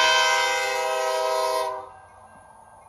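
A train horn blasts loudly.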